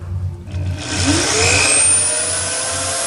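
An electric drill starts up with a rising whine.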